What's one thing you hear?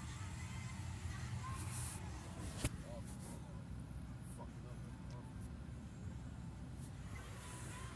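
A car engine rumbles low and steadily from inside the vehicle.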